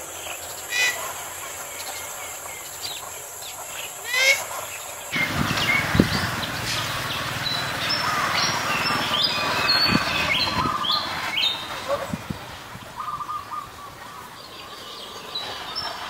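Birds call with sharp chirps and whistles.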